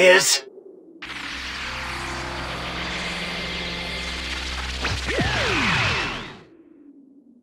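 An energy beam fires with a loud, steady roar that ends with a falling whine.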